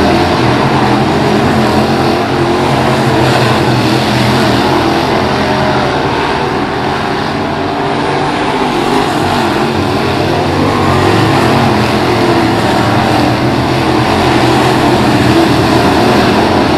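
Race car engines roar loudly and steadily.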